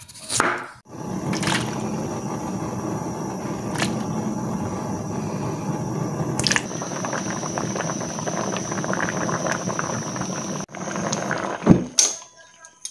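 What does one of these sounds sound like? Water bubbles and boils steadily in a pot.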